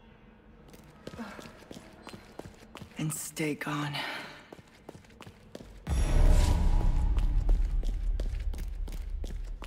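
Footsteps tap on a stone floor in an echoing hall.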